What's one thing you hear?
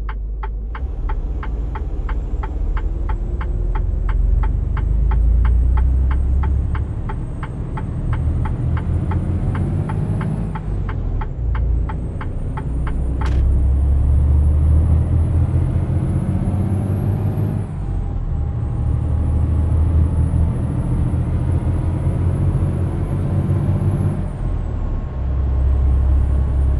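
A truck engine rumbles steadily, its pitch rising and falling with gear changes.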